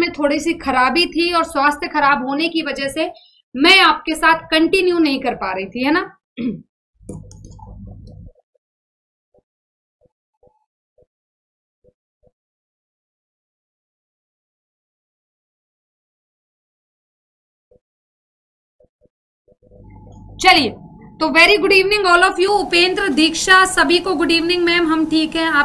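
A young woman speaks with animation into a close microphone.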